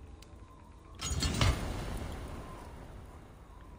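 A deep whooshing thud sounds as an item locks into place, then fades.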